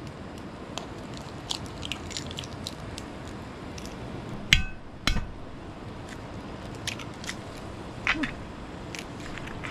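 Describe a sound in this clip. An eggshell cracks against a pan.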